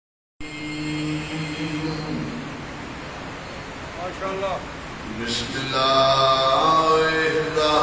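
A man chants a mournful recitation into a microphone over loudspeakers, heard in a large echoing hall.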